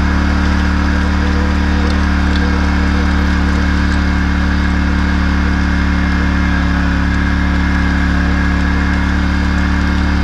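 A metal harrow rattles and scrapes over the soil.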